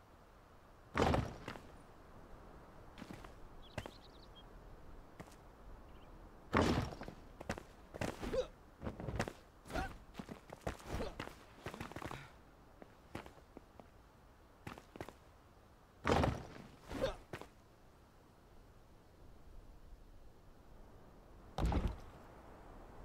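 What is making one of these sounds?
Heavy stone blocks thud into place one after another.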